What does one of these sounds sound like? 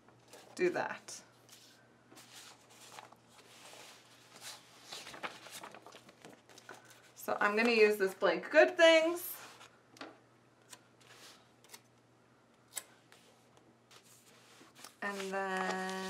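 Paper sheets rustle and shuffle as they are handled.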